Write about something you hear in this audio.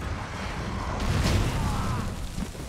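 A fiery explosion booms loudly.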